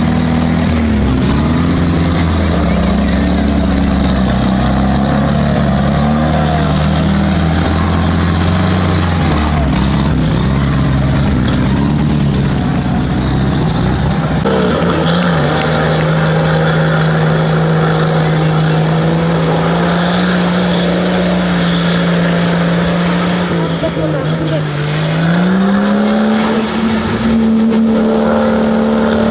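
An off-road vehicle's engine roars and revs up and down.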